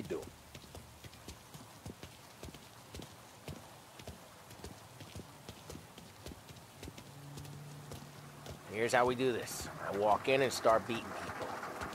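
Footsteps tap steadily on hard pavement.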